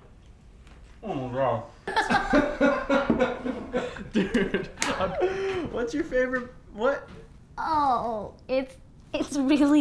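A young woman laughs loudly and uncontrollably nearby.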